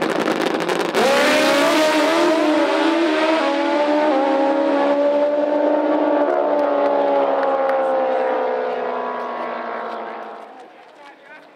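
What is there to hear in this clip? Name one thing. Two drag racing motorcycles launch with a roaring, rising engine howl that fades into the distance.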